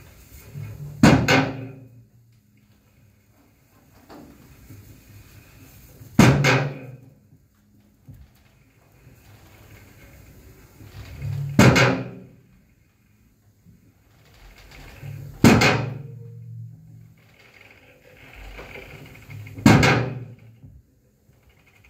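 A drum is struck hard every few seconds, each blow ringing out and fading in an echoing room.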